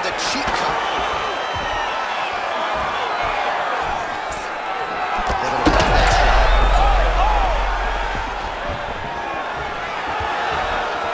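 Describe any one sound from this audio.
A large crowd cheers and murmurs in a big echoing arena, swelling to a roar.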